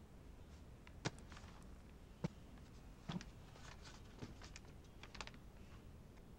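Paper rustles and small objects tap on a desk.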